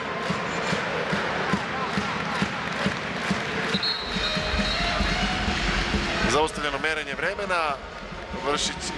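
A large crowd cheers and chants in an echoing indoor arena.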